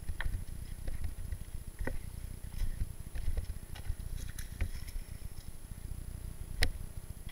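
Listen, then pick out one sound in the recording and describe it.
Bicycle tyres rattle and crunch over loose rocks.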